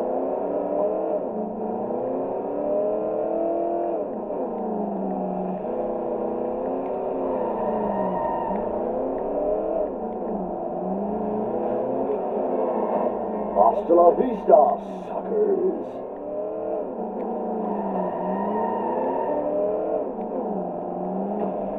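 A car engine revs up and down steadily as it speeds along.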